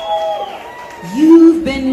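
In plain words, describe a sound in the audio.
An audience cheers and whoops.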